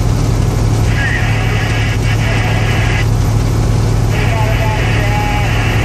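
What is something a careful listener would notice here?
A bus engine drones while cruising on a highway.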